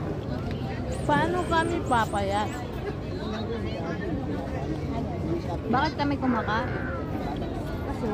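Young women chat with animation close by.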